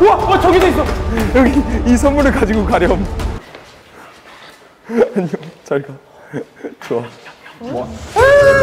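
A young man speaks excitedly, close by.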